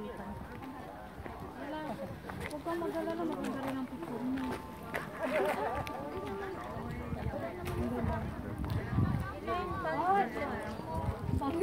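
Several adult men and women chat nearby outdoors.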